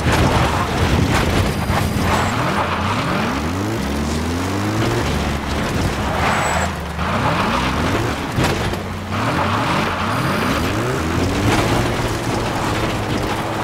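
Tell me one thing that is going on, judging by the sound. Tyres crunch and skid over dirt and gravel.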